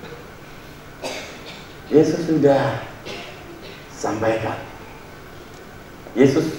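A man speaks through a microphone in bursts, with pauses, in a large echoing hall.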